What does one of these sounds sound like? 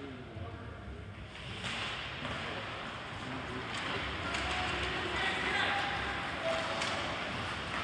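Spectators murmur and shout from the stands.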